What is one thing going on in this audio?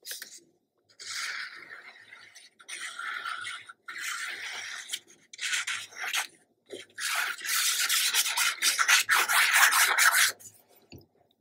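Glue squirts and scrapes from a bottle onto paper.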